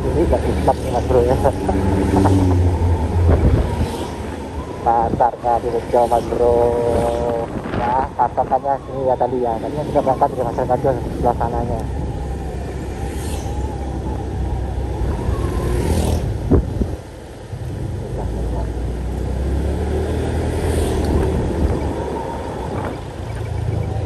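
Cars and motorbikes rumble along a street in the distance.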